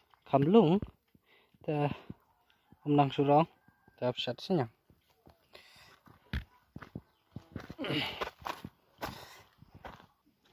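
Sandals scuff on dry ground as someone walks.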